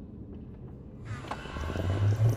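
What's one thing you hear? A portal whooshes with a deep rumble.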